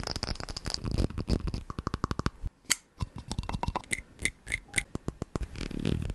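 A plastic jar is tapped and scratched close to a microphone.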